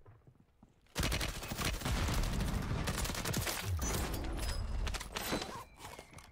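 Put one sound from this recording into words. Gunfire bursts loudly in a game.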